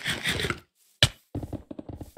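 A sword strikes with a sharp hit.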